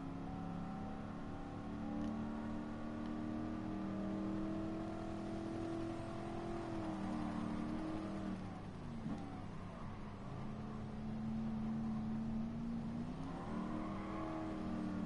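A race car engine roars at high revs, dropping in pitch as the car brakes and then climbing again.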